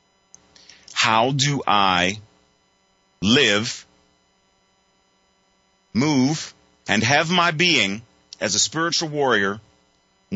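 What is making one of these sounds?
A man speaks with animation, close to a microphone, in short bursts.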